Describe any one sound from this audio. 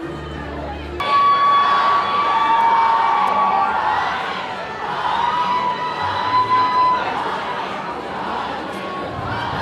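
Young women in a crowd scream and shriek excitedly.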